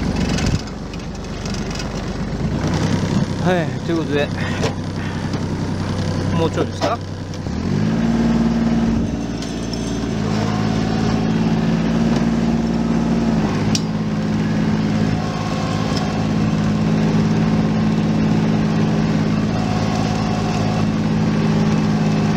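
A tractor engine runs steadily close by, its pitch rising as it speeds up.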